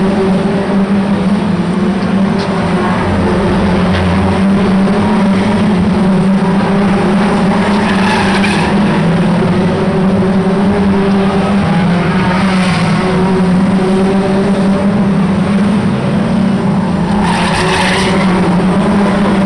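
Racing car engines roar loudly around a track.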